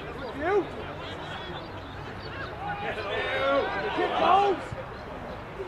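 Young men shout and cheer from across an open field.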